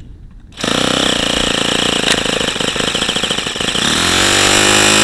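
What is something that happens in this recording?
A small model engine sputters roughly as it starts, then settles.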